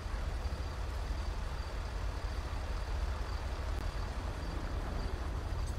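A heavy truck engine rumbles as the truck rolls slowly past.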